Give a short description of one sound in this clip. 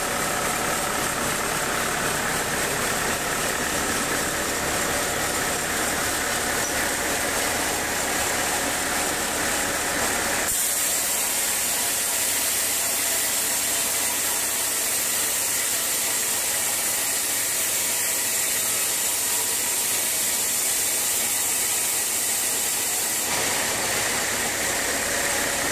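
A band saw whines steadily as it cuts through a large log.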